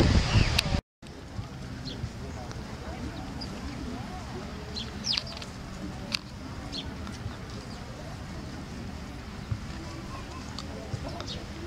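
Sparrows chirp and twitter close by.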